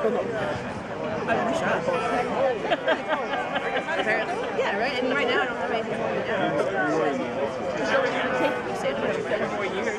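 A live band plays rock music outdoors through loudspeakers.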